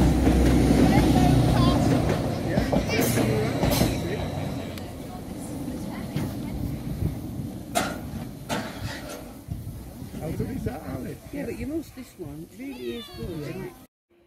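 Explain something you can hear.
A railway turntable clanks as it is pushed round.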